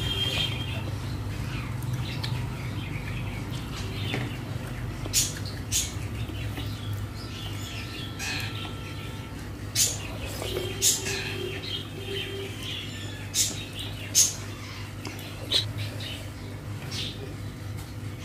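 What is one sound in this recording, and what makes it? Fingers squish and mix food on a plate close by.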